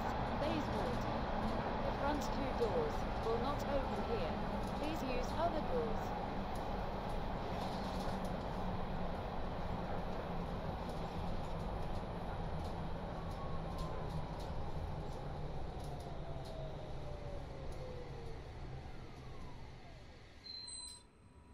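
A train rumbles along the rails and slows down.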